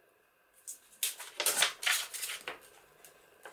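Paper tears along a straight edge.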